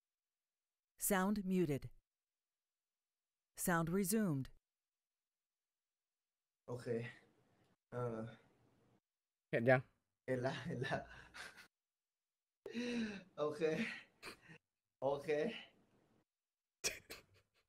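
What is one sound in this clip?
A young man talks casually into a microphone, in short bursts.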